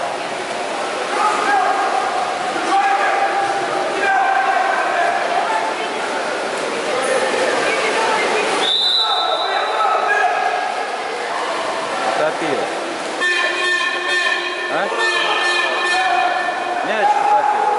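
Players splash and thrash in the water of a large echoing pool.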